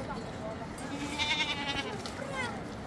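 A goat bleats.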